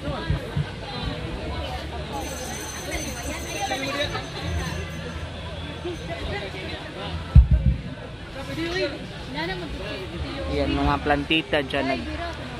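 A crowd of men and women chatter outdoors.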